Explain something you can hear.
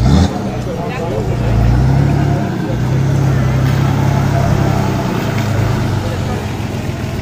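A truck engine rumbles and revs nearby.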